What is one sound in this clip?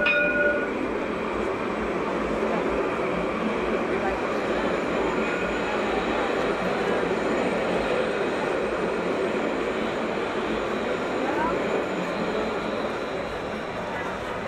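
A tram hums slowly past close by.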